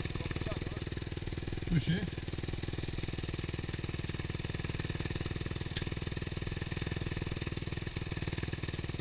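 A dirt bike engine idles close by with a steady rapid putter.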